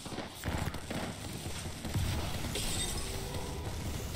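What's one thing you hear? Rapid gunshots crack in quick bursts.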